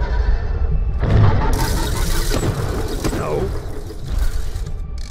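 A jump pad launches with a loud rushing whoosh.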